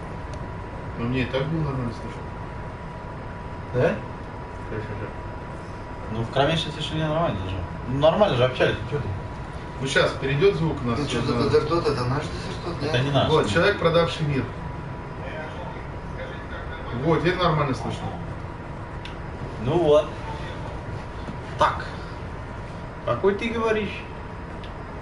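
A young man talks casually into a microphone, in bursts with pauses.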